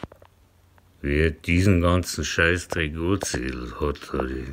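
An older man speaks with animation, close by.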